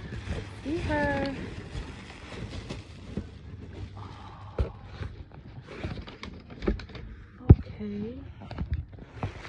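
Fabric rustles and crinkles close by.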